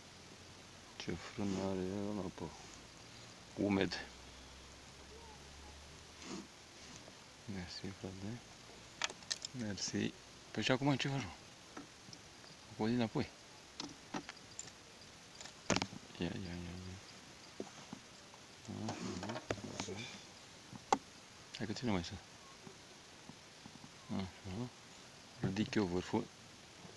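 A man talks calmly close by, in short bursts.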